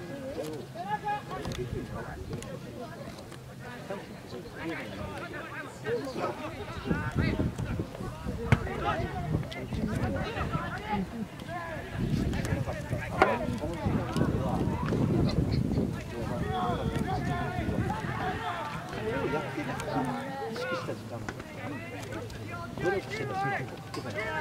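A crowd of spectators murmurs and cheers outdoors.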